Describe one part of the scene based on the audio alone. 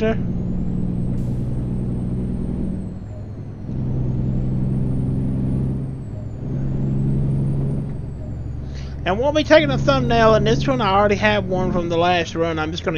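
A truck engine drones steadily, rising and easing in pitch.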